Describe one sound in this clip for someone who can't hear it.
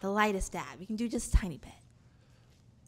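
A young woman laughs and exclaims loudly into a microphone.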